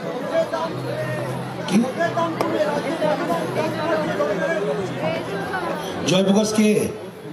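A man speaks with animation into a microphone, heard through a loudspeaker outdoors.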